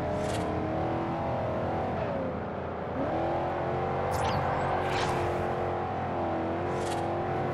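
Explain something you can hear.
Tyres squeal as a car drifts around a bend.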